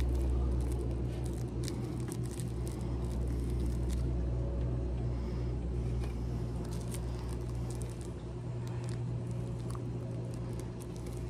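Rolling paper crinkles and rustles between fingers close by.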